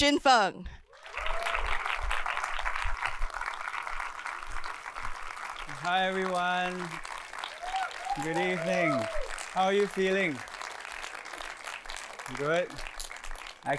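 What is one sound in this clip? A large audience claps and cheers in a big hall.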